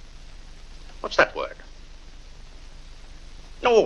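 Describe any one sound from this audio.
A young man speaks briefly in reply.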